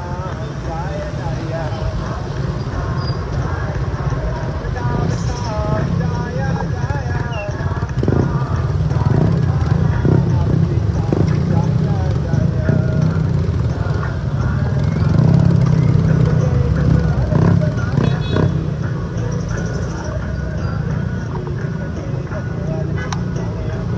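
Motorcycle engines hum and rumble close by in slow traffic.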